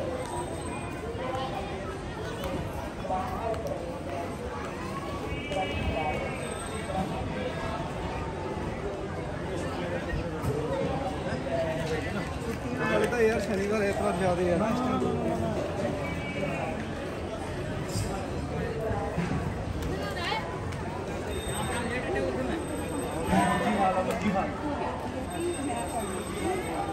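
A crowd of men and women chatter all around, outdoors in a busy open square.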